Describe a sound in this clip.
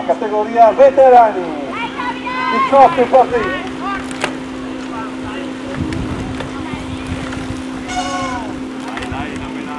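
Bicycles roll past over grass.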